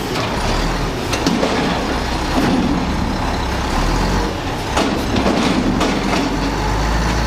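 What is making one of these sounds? Trash tumbles and crashes into a truck's hopper.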